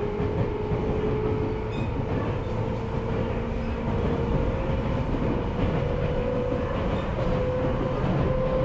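A train motor whines with a steady, slowly rising tone.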